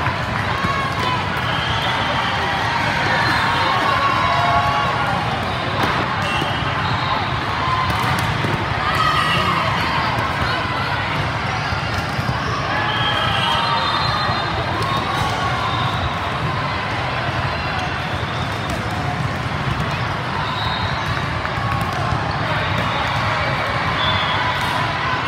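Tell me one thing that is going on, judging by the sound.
Young women players shout to one another.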